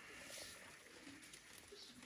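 A cow munches and rustles hay.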